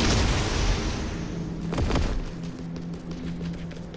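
Quick footsteps patter as a figure runs.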